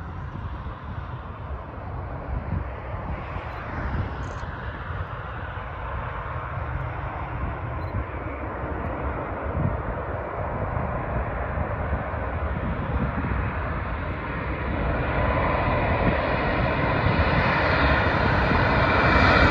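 A jet airliner approaches low overhead with a rising roar.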